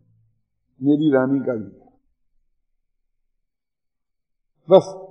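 An elderly man speaks calmly and slowly into a microphone.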